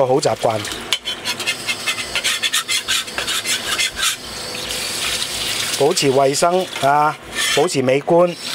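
Tap water runs and splashes into a metal pan.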